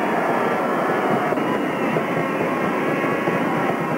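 Drums beat in a crowd.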